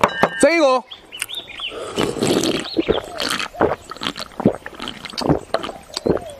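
A young man gulps down a drink.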